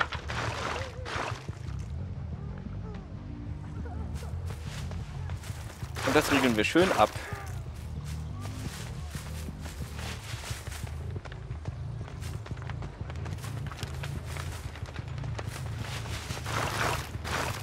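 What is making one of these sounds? Footsteps crunch over dry leaves and twigs.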